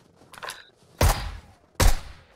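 Gunshots ring out loudly in quick bursts.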